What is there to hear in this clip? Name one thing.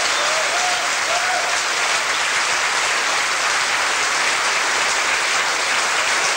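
A crowd claps loudly and steadily in a large hall.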